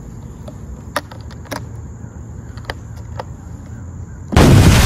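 Metal latches on a case click open.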